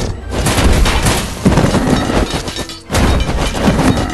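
A giant club smashes into a crowd of fighters.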